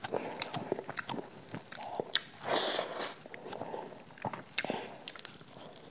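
A young woman tears crispy fried chicken apart with her fingers.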